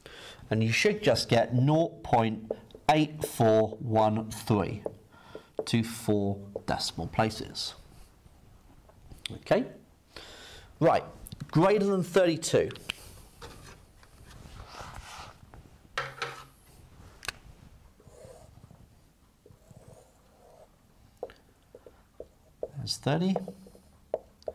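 A man speaks calmly, explaining in a small room.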